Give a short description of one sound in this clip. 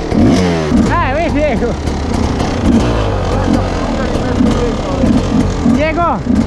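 A dirt bike engine idles with a steady low rumble.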